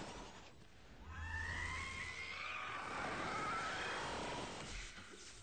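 A man screams in agony.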